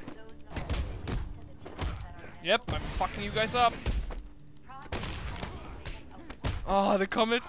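Heavy punches and kicks land with dull thuds.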